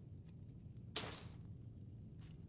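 Coins jingle once as an item is sold.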